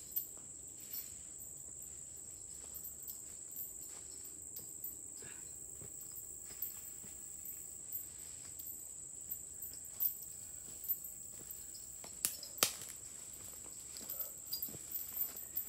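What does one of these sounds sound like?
Footsteps crunch on a dirt trail, coming closer.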